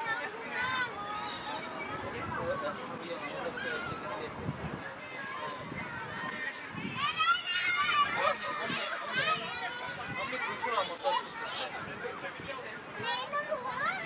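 Children shout and call to each other far off outdoors.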